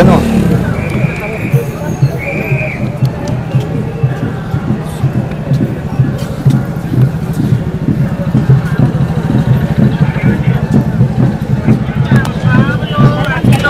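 Footsteps thud steadily on pavement.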